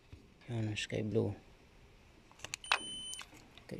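A plastic connector clicks as fingers handle it.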